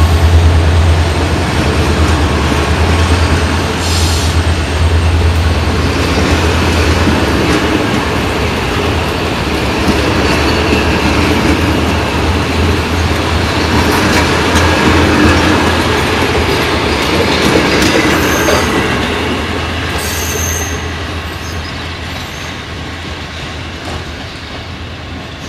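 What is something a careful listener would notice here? A diesel locomotive rumbles as it pulls a train past up close.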